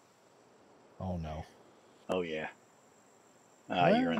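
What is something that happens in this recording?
A man speaks close to a microphone in short bursts.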